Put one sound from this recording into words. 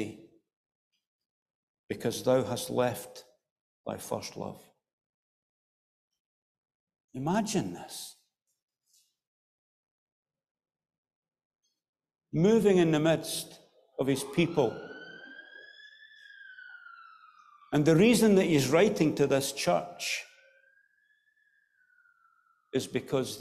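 A man speaks slowly into a microphone in short phrases with long pauses, his voice echoing in a large hall.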